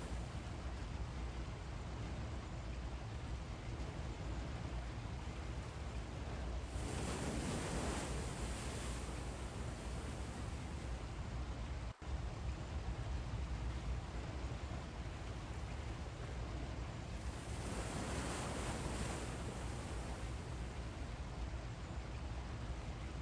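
A large ship's engine rumbles low and steady.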